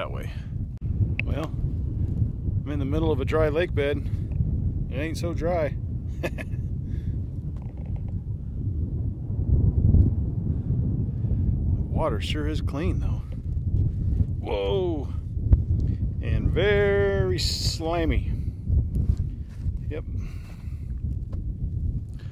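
Wind blows hard, rumbling against the microphone outdoors.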